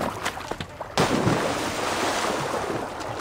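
A body plunges into water with a loud splash.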